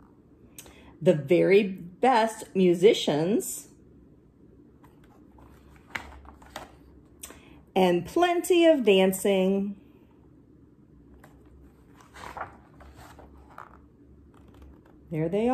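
A woman reads a story aloud close by, in a calm, expressive voice.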